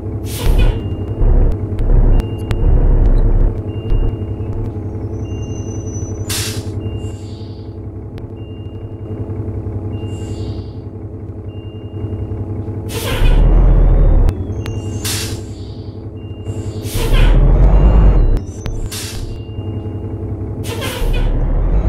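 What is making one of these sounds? A turn signal ticks at a steady pace.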